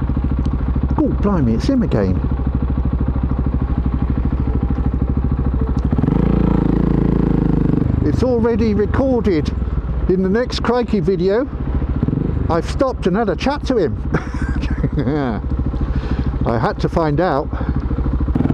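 A motorcycle engine revs up and down repeatedly.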